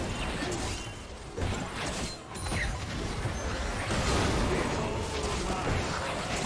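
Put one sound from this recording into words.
Magic blasts and sword strikes crackle and whoosh in a video game fight.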